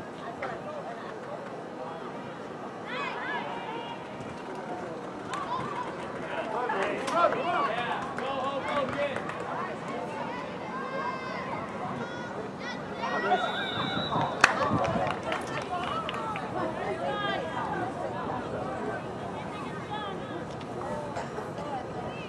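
Young women shout and call out across an open field outdoors.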